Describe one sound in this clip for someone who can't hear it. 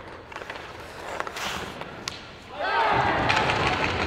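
A stick strikes a puck with a sharp crack.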